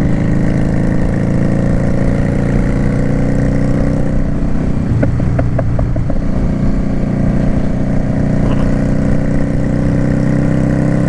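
A motorcycle engine drones steadily at cruising speed.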